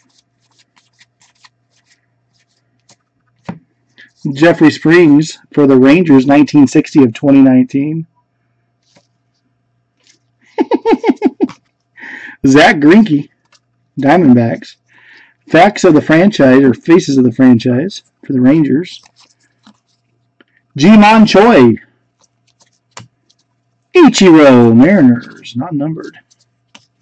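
Stiff cards slide and rustle against each other in gloved hands.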